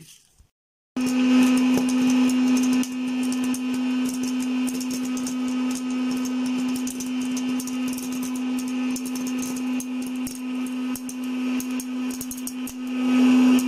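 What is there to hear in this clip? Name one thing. Popcorn kernels tick and patter as they are blown out of a popcorn machine.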